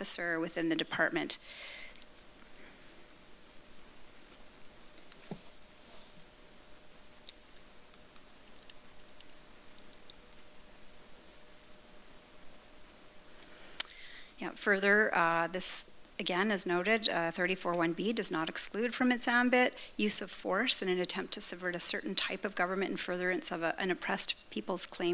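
A young woman speaks calmly into a microphone in a large room.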